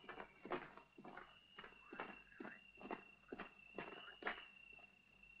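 Heavy boots stomp quickly across a wooden floor.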